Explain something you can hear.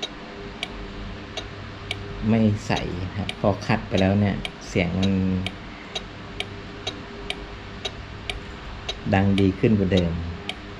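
Small metal parts click softly as a hand works on wiring.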